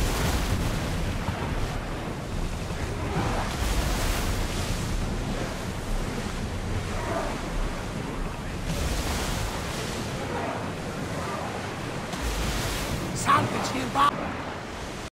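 Waves splash and rush against the hull of a moving ship.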